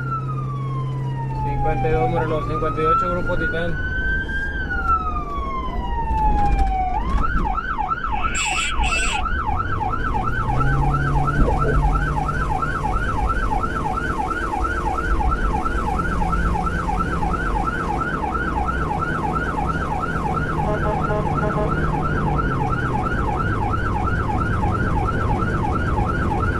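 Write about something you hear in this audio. An emergency vehicle's siren wails and then switches to a rapid yelp.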